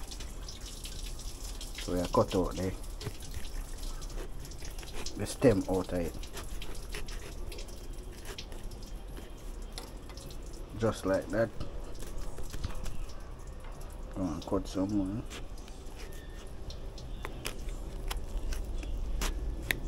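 A knife scrapes and cuts through tough fruit skin.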